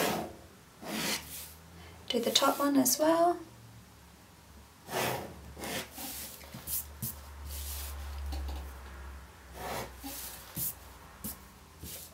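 A ruler slides and taps on paper.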